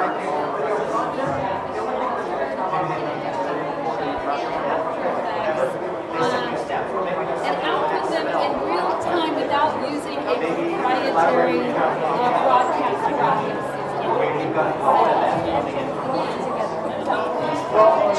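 A crowd of men and women chatters steadily in a large echoing hall.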